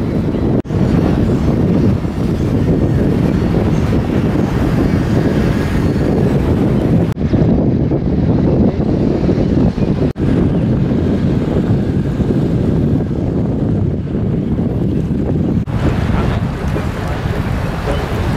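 Water rushes and splashes past a moving boat.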